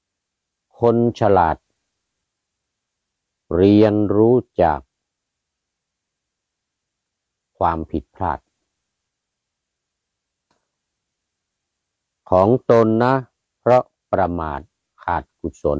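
A middle-aged man speaks calmly in short phrases, close to a microphone, with pauses in between.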